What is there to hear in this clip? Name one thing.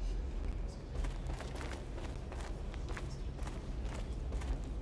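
Footsteps scuff slowly on a hard, gritty floor.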